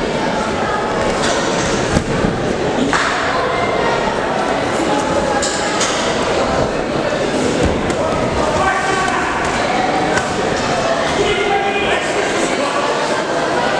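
Gloved punches thud against bodies.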